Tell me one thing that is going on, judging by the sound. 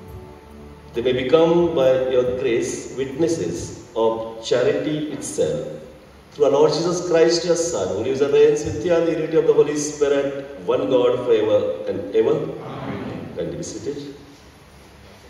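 A man speaks into a microphone in a slow, chanting voice, echoing in a large hall.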